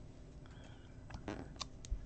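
Paper rustles and clicks softly as a hand handles a sticker on a page.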